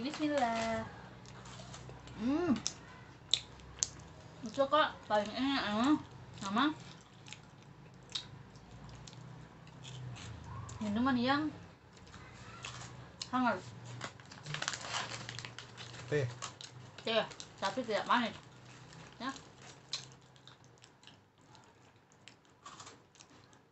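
A young woman crunches on a snack.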